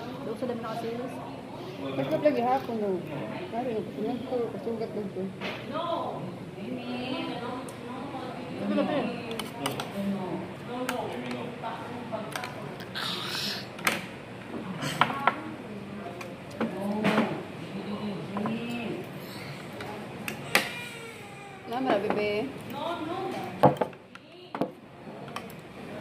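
A fork and spoon clink on a plate.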